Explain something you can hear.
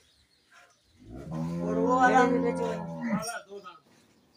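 A buffalo lets out a loud, low bellow.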